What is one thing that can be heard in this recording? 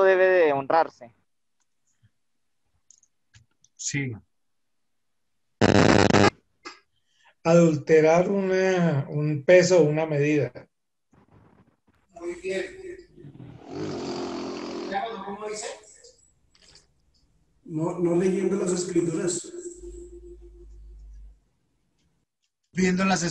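A man lectures calmly over an online call.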